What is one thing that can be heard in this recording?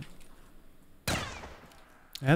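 A gun fires a short burst.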